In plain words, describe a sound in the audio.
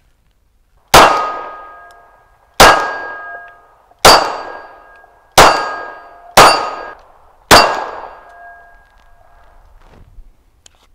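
Pistol shots ring out one after another outdoors, each echoing off the surroundings.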